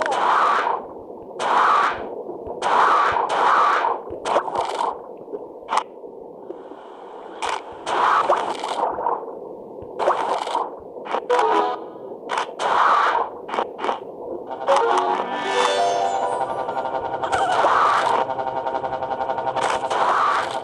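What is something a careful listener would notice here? A shark chomps and crunches as it bites prey.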